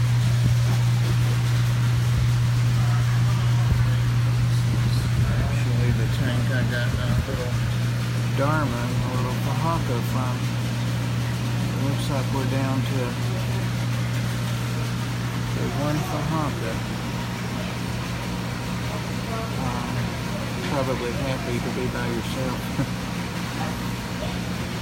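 An aquarium filter pump hums steadily and low.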